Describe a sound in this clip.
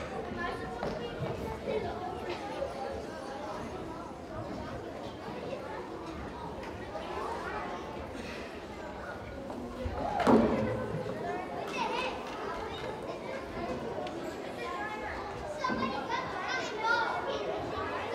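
A large group of children chatter and call out in an echoing hall.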